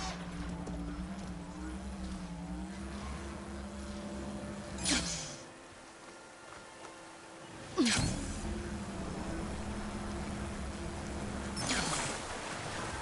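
A glider hums and whooshes steadily through the wind.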